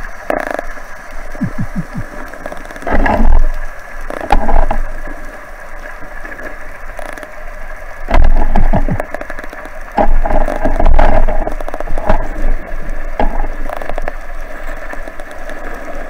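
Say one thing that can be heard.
A diver breathes loudly through a regulator underwater.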